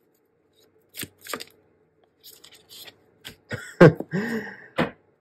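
Playing cards shuffle and slap down onto a table.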